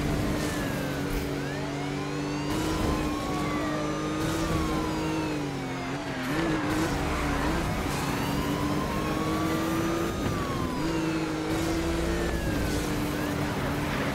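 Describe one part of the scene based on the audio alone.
A police siren wails with rising and falling pitch.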